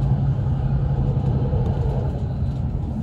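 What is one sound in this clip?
A passing train rushes by close outside.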